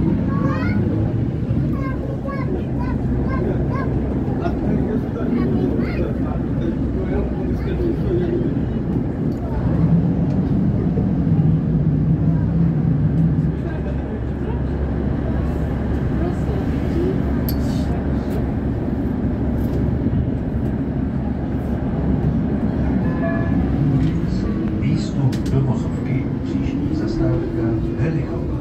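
A tram rumbles steadily along its rails.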